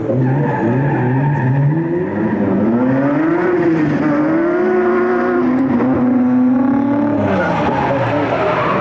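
Two car engines roar and rev hard, rising and falling in pitch.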